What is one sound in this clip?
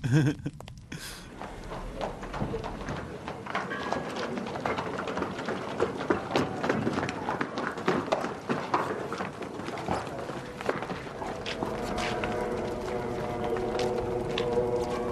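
A horse-drawn chariot rattles over stone pavement.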